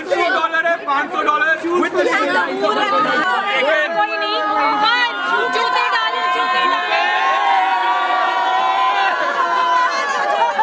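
A crowd of young women and men chatters and shouts excitedly close by.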